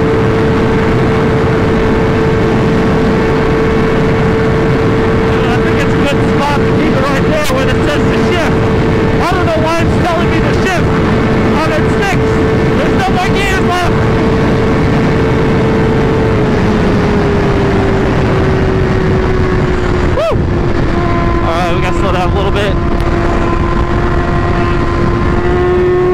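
A motorcycle engine hums steadily at speed, its pitch dropping slightly partway through.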